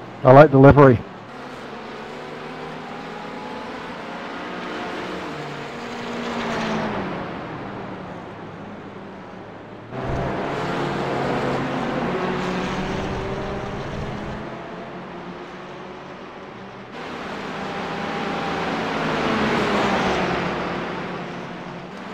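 Car engines rise and fall in pitch as drivers shift gears.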